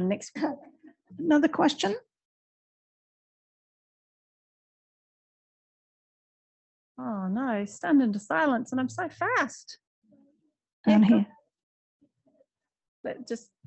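A woman speaks calmly into a microphone, with pauses.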